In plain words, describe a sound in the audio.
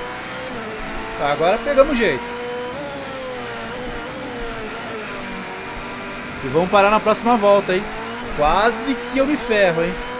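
A racing car engine whines steadily and shifts pitch as it speeds up and slows down.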